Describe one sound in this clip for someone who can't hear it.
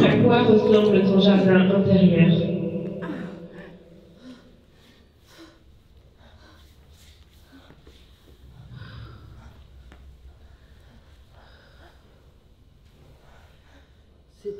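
Bodies slide and brush softly across a floor.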